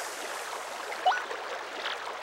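A short rising game chime confirms a menu choice.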